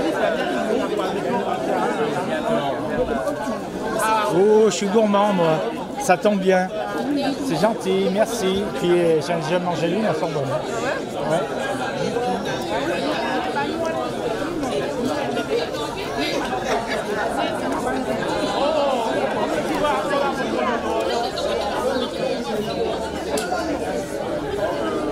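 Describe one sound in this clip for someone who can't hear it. A crowd of men and women chats outdoors.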